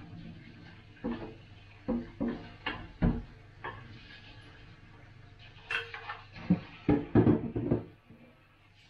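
Dishes clink and knock in a sink.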